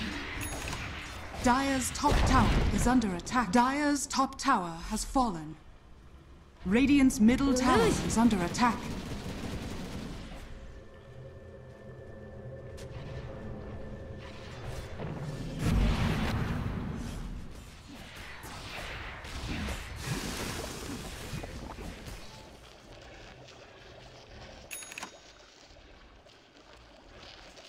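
Weapons clash and spells crackle in a busy fantasy battle.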